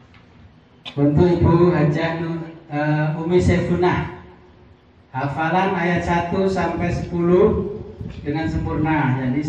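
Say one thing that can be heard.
An elderly man speaks loudly through a microphone and loudspeaker in an echoing room.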